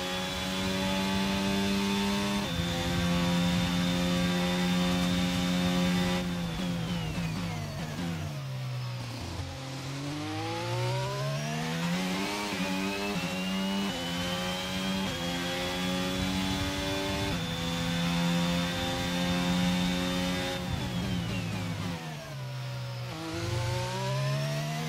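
A racing car engine screams at high revs, drops sharply while braking and climbs again through the gears.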